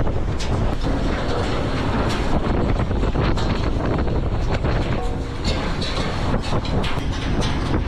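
Rough sea water churns and splashes against a boat's hull.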